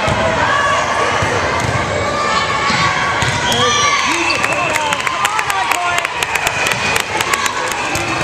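Young girls shout and call out to each other in a large echoing gym.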